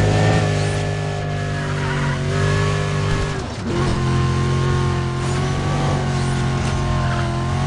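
A sports car engine roars at high speed, dipping briefly as the gear shifts.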